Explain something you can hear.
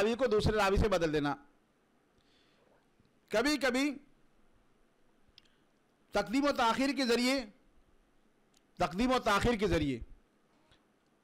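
A middle-aged man speaks calmly into a close microphone, in short phrases with pauses.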